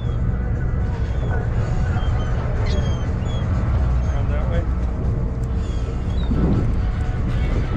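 A low steady rumble of wind and water surrounds a small boat outdoors.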